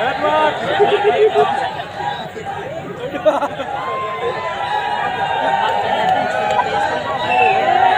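A large crowd chatters loudly outdoors.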